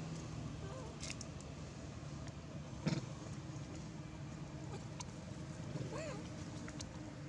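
A young macaque squeals.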